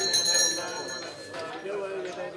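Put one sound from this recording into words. A large bronze temple bell rings out with a long metallic hum.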